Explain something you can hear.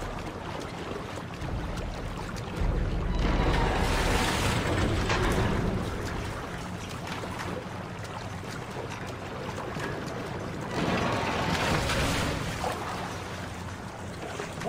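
Water splashes and churns as someone swims quickly.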